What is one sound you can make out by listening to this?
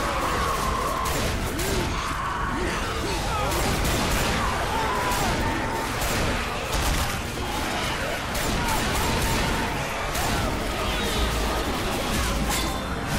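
Guns fire rapid bursts of shots.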